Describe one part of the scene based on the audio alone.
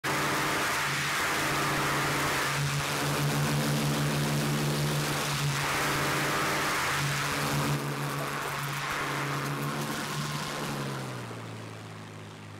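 Wind rushes loudly past a diving plane.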